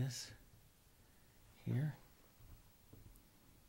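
A brush dabs and strokes softly on canvas.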